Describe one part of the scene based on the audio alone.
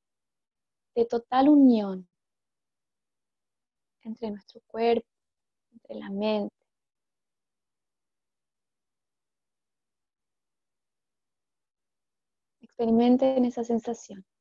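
A woman speaks calmly in short phrases with pauses, close to the microphone.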